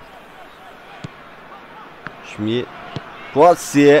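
A football is kicked with a dull thud.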